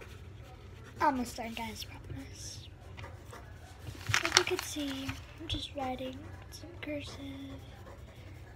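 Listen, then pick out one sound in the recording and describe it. A young girl speaks softly and casually close by.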